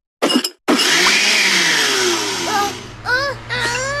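A blender whirs.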